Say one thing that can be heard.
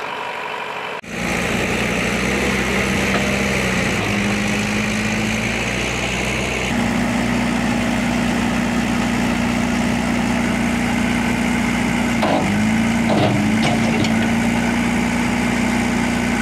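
A tractor engine labours loudly as the tractor pulls a loaded trailer through mud, its pitch rising and dipping.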